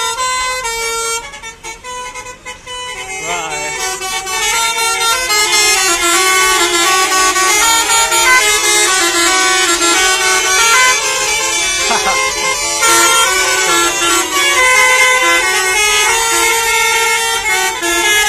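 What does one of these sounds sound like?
Bus horns play loud musical tunes outdoors.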